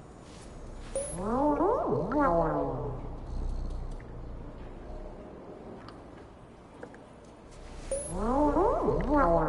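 A cat meows loudly, close by.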